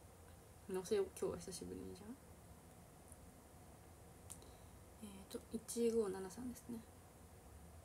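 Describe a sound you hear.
A young woman speaks softly and close by, in short bursts.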